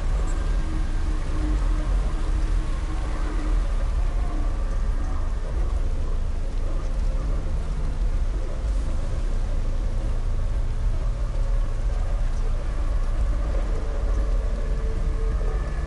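Water pours down in a steady, roaring waterfall.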